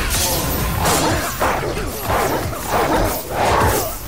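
An electric blast crackles and bursts loudly.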